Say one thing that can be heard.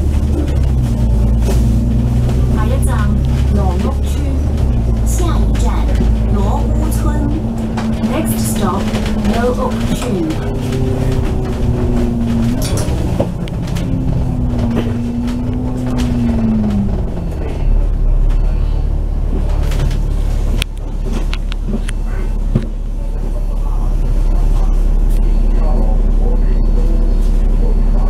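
A bus engine hums and whines steadily as the bus drives along.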